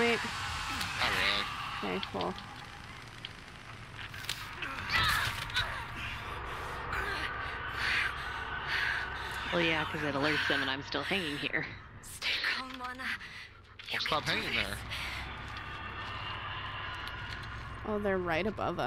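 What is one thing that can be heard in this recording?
A young woman talks and exclaims with animation close to a microphone.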